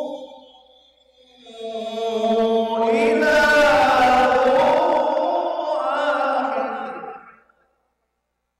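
A man chants a long, melodic recitation into a microphone, his voice echoing in a large hall.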